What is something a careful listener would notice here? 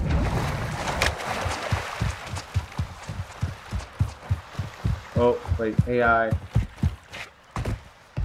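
Footsteps crunch on sand and gravel.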